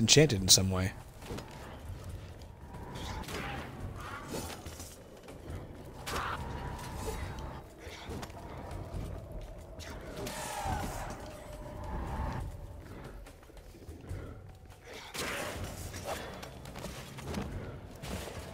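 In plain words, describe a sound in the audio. Swords slash and clash in quick bursts.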